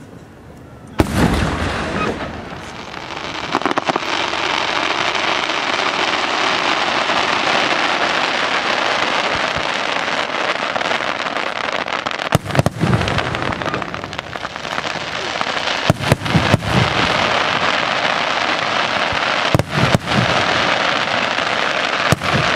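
Fireworks burst with loud booms.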